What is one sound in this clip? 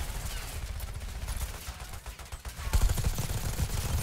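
An explosion booms close by.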